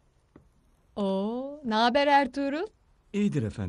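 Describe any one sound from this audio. A young woman speaks briefly.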